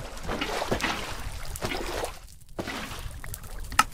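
Fire crackles and roars nearby.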